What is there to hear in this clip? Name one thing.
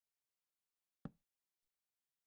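A torch is set down with a soft thud.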